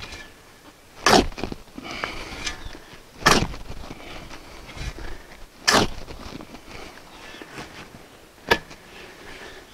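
A shovel scrapes and digs into dry soil.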